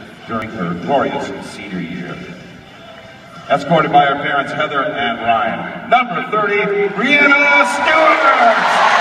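A man sings into a microphone, heard over loudspeakers in a large echoing arena.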